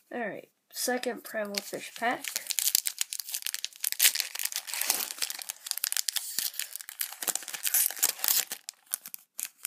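A foil wrapper crinkles and tears open in close hands.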